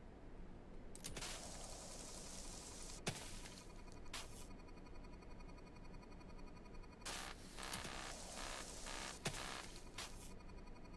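A spray nozzle hisses in short bursts.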